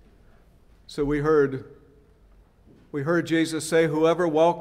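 An older man speaks slowly through a microphone.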